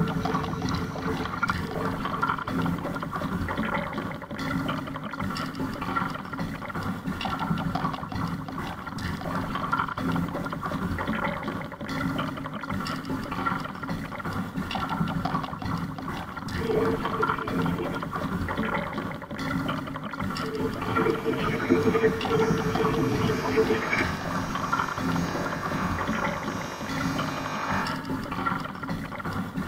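Wind blows outdoors across open water.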